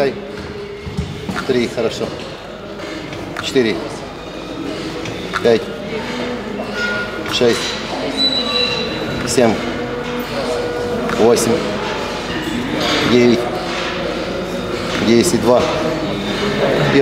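Weight plates clank.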